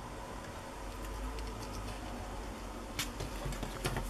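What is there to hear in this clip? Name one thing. A piece of card taps down onto a table.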